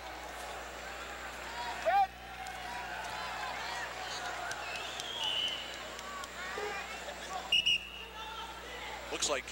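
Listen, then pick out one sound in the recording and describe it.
Wrestling shoes squeak sharply on a mat.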